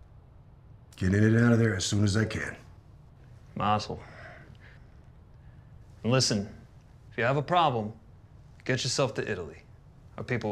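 A middle-aged man speaks calmly and close by, in short phrases with pauses.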